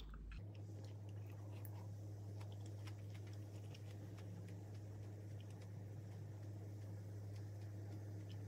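A young woman chews food close by with soft, wet smacking sounds.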